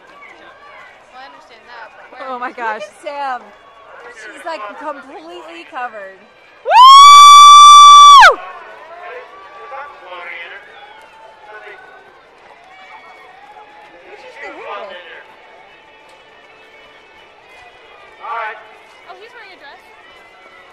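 A small crowd of men and women cheers and shouts outdoors.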